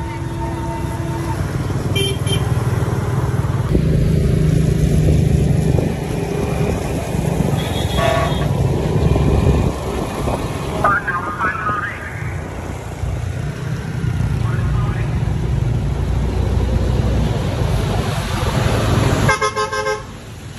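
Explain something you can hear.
Tyres hiss on the wet road.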